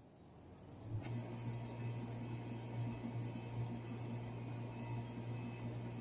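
An air conditioning unit hums with a low, steady drone.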